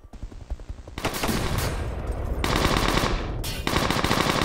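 An explosion bursts with a loud rumble.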